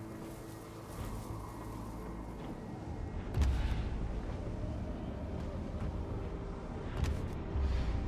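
Large wings beat with heavy, whooshing flaps.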